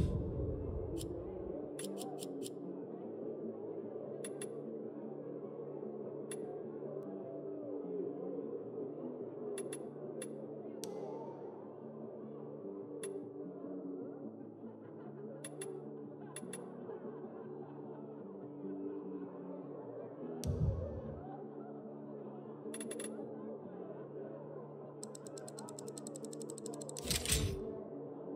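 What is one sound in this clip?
Short soft clicks tick now and then as menu items are selected.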